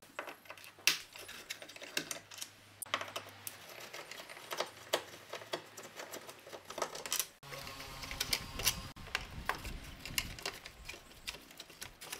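A screwdriver clicks and scrapes against metal screws.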